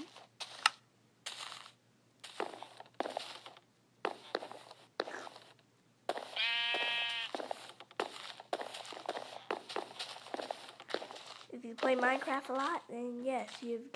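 Wooden blocks are placed with short, soft knocks.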